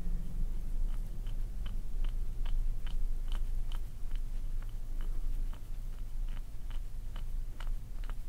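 A small tool scrapes and clicks against toes.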